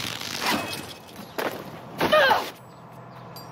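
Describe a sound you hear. Leaves rustle as a climber pushes through a climbing plant.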